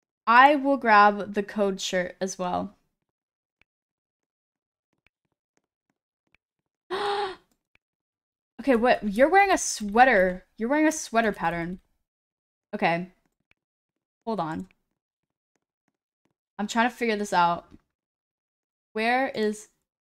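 A young woman talks with animation into a close microphone, in bursts with pauses.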